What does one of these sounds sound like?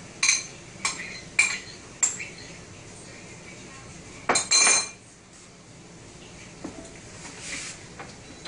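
Dishes and utensils clink and clatter on a counter.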